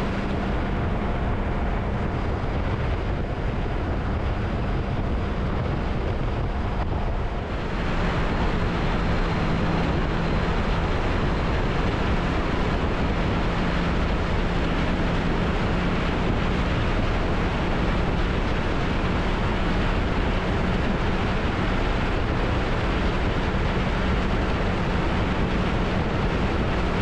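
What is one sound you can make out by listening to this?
A motorcycle engine drones steadily at high speed.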